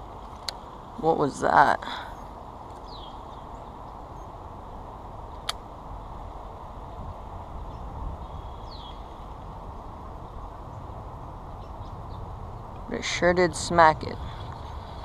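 A fishing reel whirs as line spools out during a cast.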